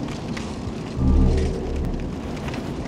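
A deep boom thuds once.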